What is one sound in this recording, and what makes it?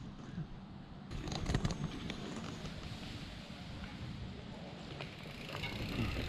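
Mountain bike tyres crunch and rattle over a dirt trail.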